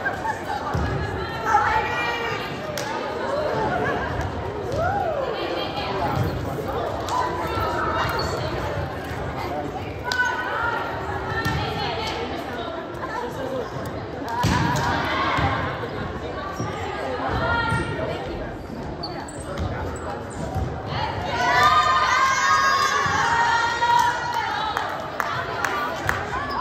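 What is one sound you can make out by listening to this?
A crowd of young women and girls chatter and call out in a large echoing gym.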